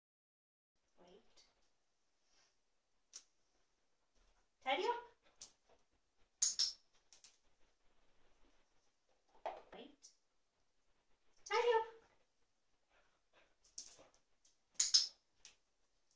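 A woman speaks to a dog in short, encouraging bursts.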